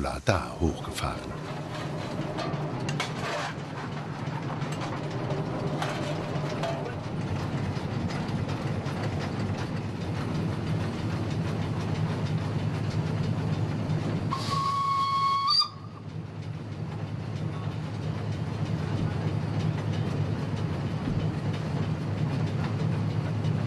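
A steam locomotive rumbles steadily.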